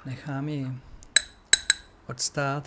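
A spoon clinks against a cup while stirring.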